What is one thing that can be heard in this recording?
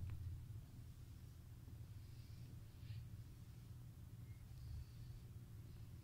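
A rubber brush rustles softly through fur.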